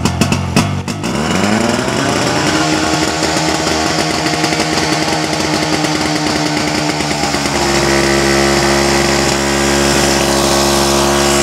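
A portable pump engine starts up and roars steadily.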